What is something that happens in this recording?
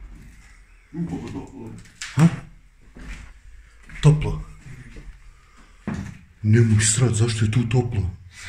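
A man speaks nearby in a low voice.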